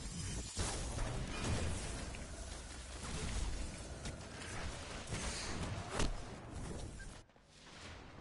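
Video game gunfire and explosions crack and boom loudly.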